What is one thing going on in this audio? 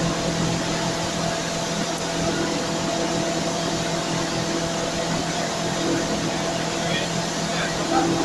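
Industrial machinery hums loudly and steadily.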